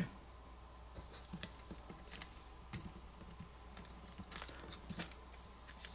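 Fingers tap and rub against the back of a phone, with soft clicks and scrapes.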